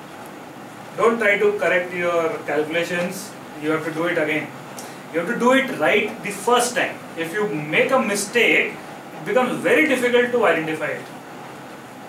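A man speaks in a lecturing tone.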